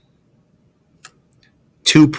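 A small metal clip clicks against a wooden ruler.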